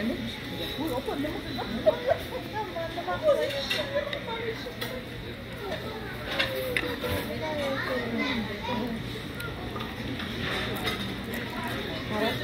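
A woman crunches on fried food as she chews.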